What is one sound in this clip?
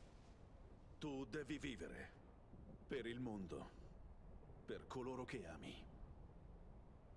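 A man speaks in a low, calm voice, close by.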